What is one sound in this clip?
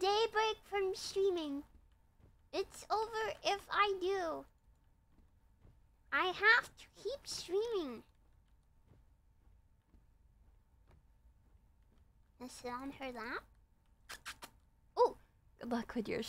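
A young woman speaks with animation in a high, cute voice close to a microphone.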